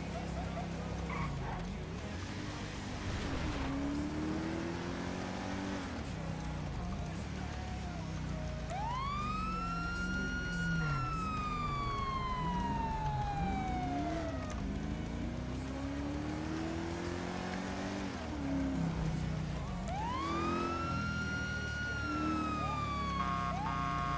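A car engine revs and drones as it speeds along.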